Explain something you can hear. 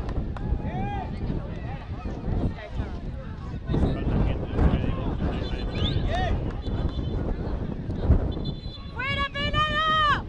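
Young men shout and cheer excitedly outdoors.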